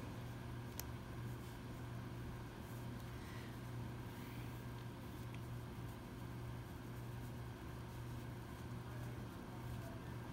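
Playing cards shuffle and flick softly in a hand.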